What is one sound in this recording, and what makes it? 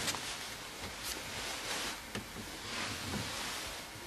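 A card slides against paper in a box.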